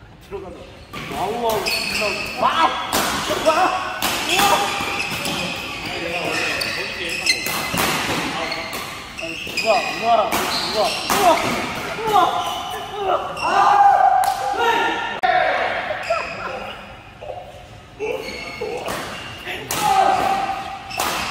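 Shuttlecocks are struck sharply by rackets again and again in an echoing hall.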